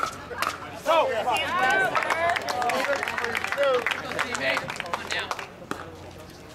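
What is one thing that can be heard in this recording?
A crowd of spectators cheers and claps.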